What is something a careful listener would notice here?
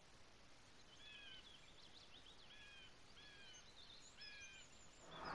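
Small birds chirp in short, repeated calls.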